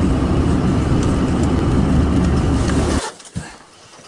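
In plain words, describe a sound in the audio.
A car engine rumbles loudly.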